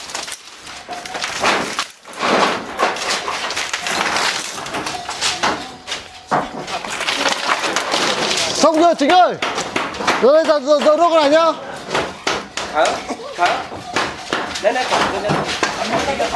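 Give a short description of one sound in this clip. Bamboo poles rattle and clatter as a woven wall is pulled down.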